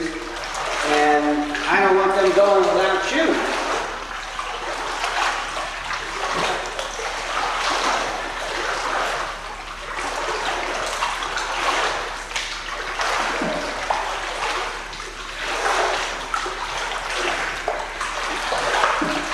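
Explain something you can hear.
Water splashes steadily as a child swims in an echoing indoor pool.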